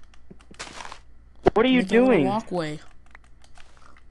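Short crunching taps of a block being dug out.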